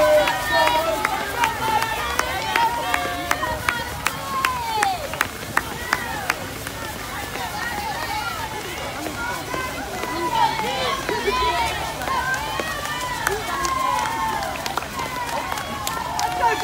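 A crowd of young men and women cheers and shouts outdoors.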